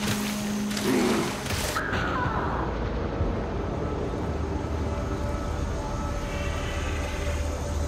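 Blades strike and slash in a fight, with sharp hits.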